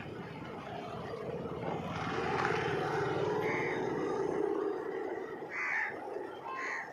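A motorcycle engine approaches, passes close by and fades away.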